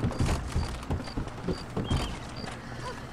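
A horse's hooves clop quickly on wooden boards.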